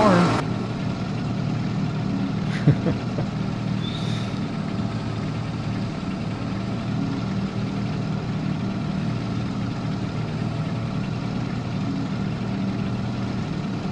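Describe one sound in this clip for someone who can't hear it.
A harvester engine hums steadily.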